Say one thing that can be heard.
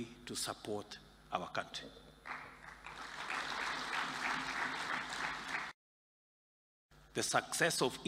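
A man speaks calmly and firmly through a microphone in a large hall.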